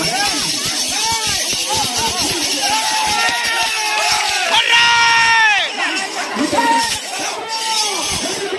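A crowd of men shout and cheer loudly close by.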